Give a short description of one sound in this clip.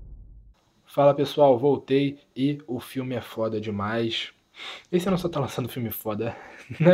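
A young man talks with animation, close to the microphone.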